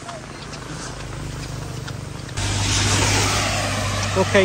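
A car drives past on a wet road.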